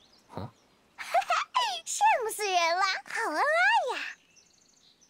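A young girl speaks playfully in a high, sing-song voice.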